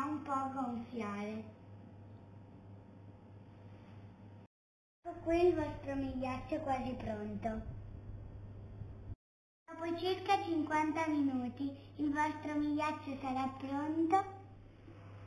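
A young girl speaks cheerfully close by.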